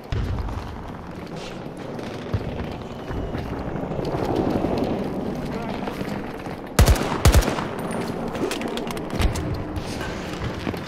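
Distant explosions and gunfire rumble in the background.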